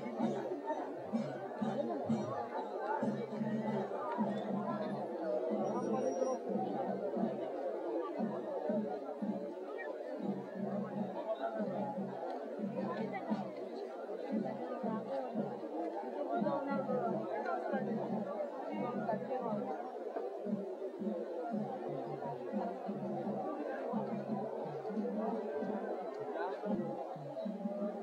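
A large crowd chatters and murmurs loudly outdoors.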